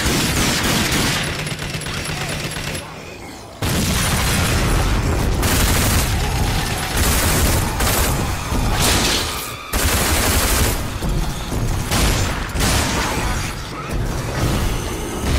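Guns fire in loud bursts.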